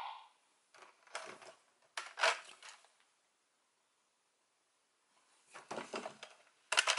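Plastic toy parts click and clatter as they are handled.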